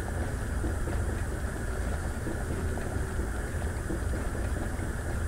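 A small gas flame hisses steadily.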